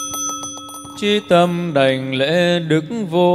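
A group of people chant together in a large echoing hall.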